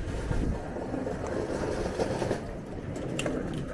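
A hand cart's wheels rattle over paving.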